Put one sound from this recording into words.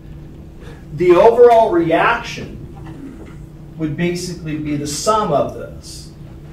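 A middle-aged man speaks calmly in a room with a slight echo.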